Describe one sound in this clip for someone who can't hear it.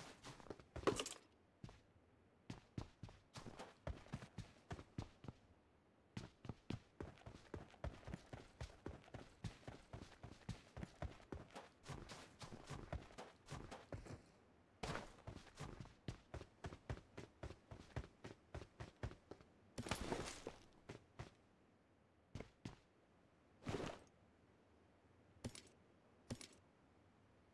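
Small items rustle and clink as they are picked up.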